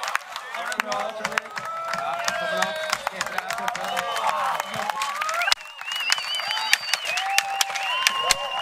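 A crowd of young spectators cheers and whistles nearby.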